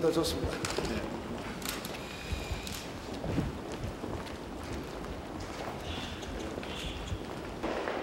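Footsteps of a group walking on a hard floor.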